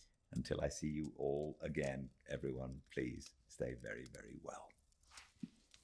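A man speaks calmly and warmly close to a microphone.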